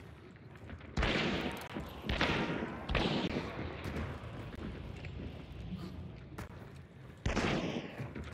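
Gunshots bang out with a short echo.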